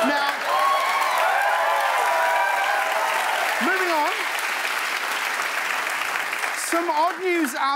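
An audience cheers and applauds loudly.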